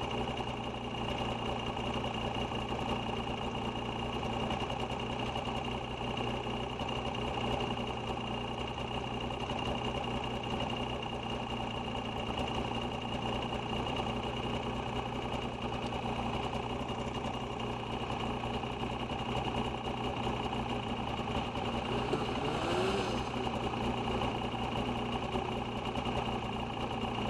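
A snowmobile engine drones steadily up close.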